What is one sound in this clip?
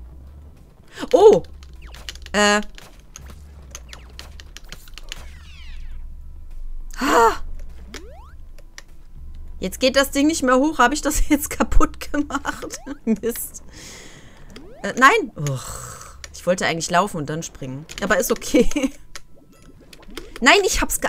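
Short electronic game sound effects chirp and zap now and then.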